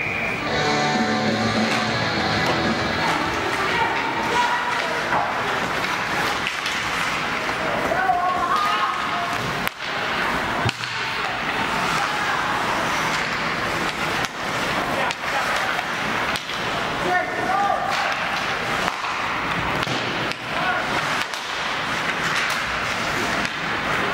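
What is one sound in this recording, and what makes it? Spectators murmur and call out in an echoing rink.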